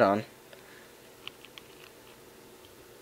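Buttons on a handheld game console click softly.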